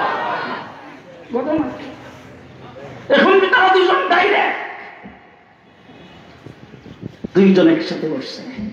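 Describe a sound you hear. A man preaches loudly and with fervour through a microphone and loudspeakers, echoing in a large hall.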